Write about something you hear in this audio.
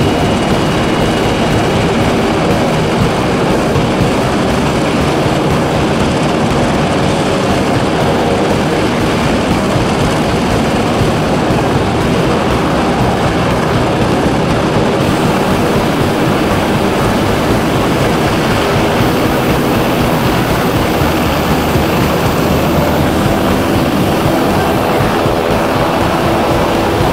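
A helicopter's rotor thumps and whines loudly nearby.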